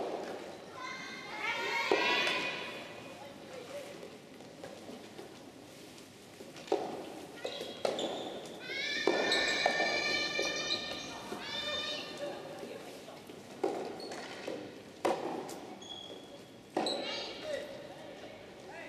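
Young women shout loudly in a large echoing hall.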